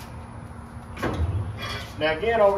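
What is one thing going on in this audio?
A metal smoker door creaks open.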